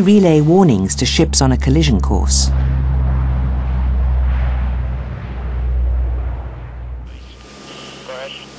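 A large propeller plane's engines roar loudly as it takes off.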